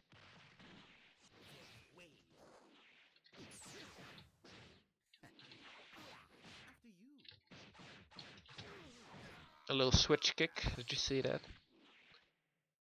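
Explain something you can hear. Punches and kicks land with sharp hits in a fighting game.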